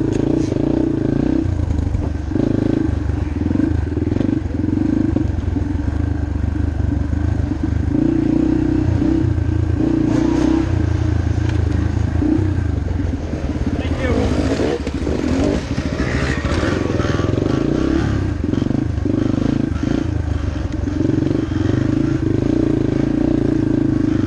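A dirt bike engine revs loudly up close, rising and falling as it climbs and drops through the trail.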